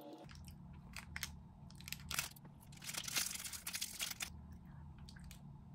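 A plastic wrapper crinkles and tears.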